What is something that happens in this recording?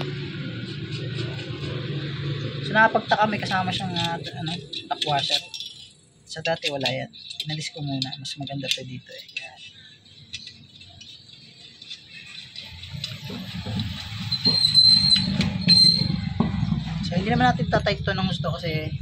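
Metal brackets clink against each other.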